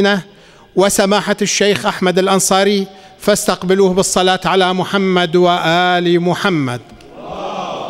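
A man chants in a long, drawn-out voice through a microphone in an echoing hall.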